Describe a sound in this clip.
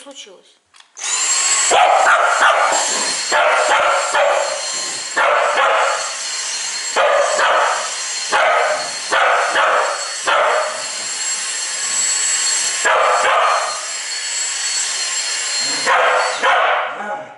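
A vacuum cleaner whirs steadily close by.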